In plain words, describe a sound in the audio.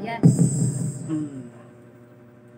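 A woman speaks into a microphone, heard loud and close through a loudspeaker.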